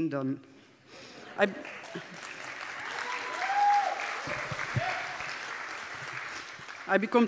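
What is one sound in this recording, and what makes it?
A woman speaks into a microphone in a large echoing hall.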